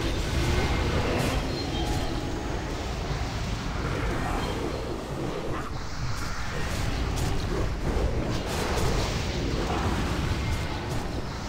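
Magic spells crackle and boom in a busy fight.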